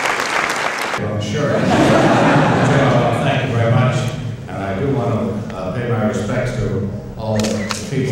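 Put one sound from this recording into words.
An elderly man speaks calmly into a microphone, heard through loudspeakers in a large room.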